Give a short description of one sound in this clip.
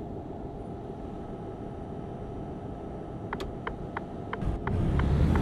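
A truck engine rumbles steadily at low speed.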